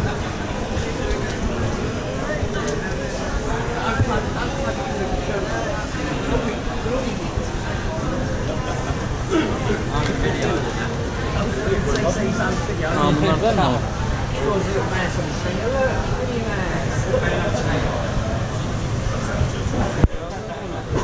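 Many voices chatter around a busy indoor hall.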